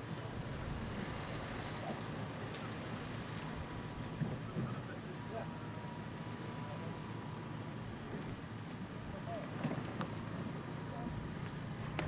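Men talk faintly in the distance.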